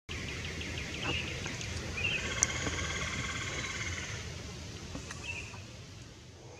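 A small bird sings in short chirps outdoors.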